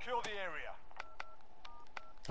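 An electronic device beeps softly.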